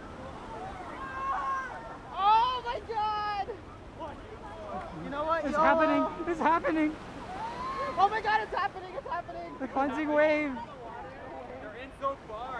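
Young men shout and cheer excitedly nearby.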